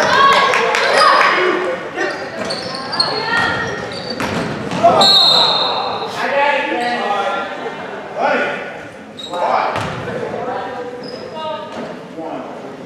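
A crowd of spectators shouts and cheers in a large echoing gym.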